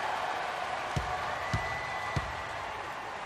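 A basketball bounces on a wooden court floor.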